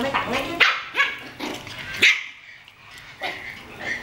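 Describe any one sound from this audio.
Small puppies yip and squeal as they play-fight.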